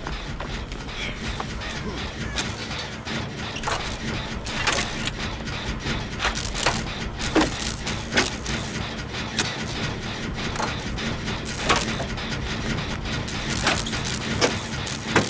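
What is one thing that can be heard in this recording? A machine clatters and clicks as it is repaired.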